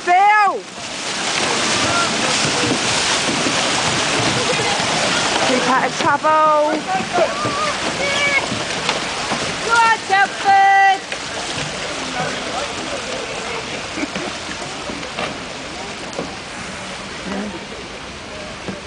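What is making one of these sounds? Fast water rushes and churns loudly outdoors.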